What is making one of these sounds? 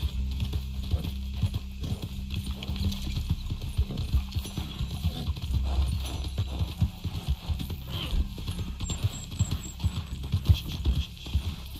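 Horse hooves thud on soft ground at a gallop.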